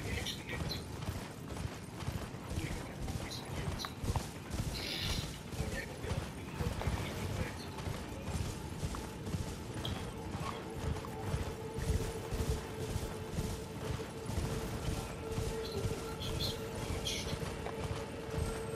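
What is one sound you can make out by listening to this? Horse hooves gallop steadily over grass and dirt.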